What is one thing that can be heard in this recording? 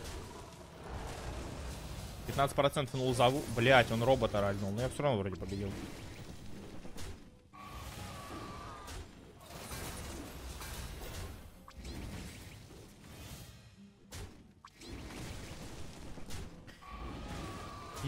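Game sound effects chime and whoosh.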